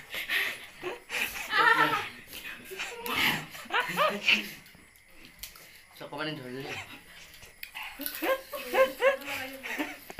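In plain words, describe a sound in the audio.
Teenage boys talk close by, with animation.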